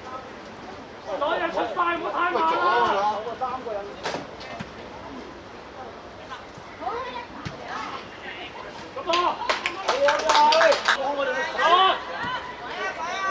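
Young players shout across an outdoor pitch.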